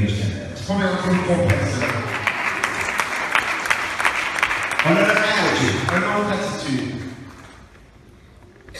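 A crowd claps in a large echoing hall.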